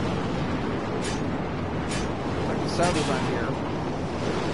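Metal clanks and bangs as a metal plate is torn loose.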